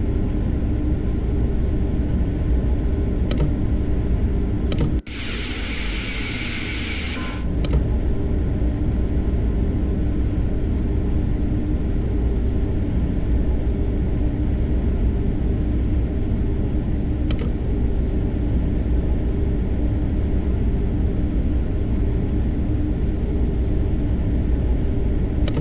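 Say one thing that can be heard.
A train rumbles steadily along the tracks, heard from inside the cab.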